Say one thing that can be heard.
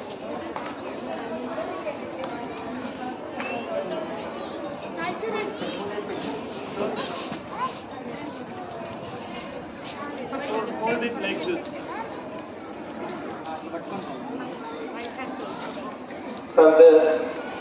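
Children and adults chatter in the background.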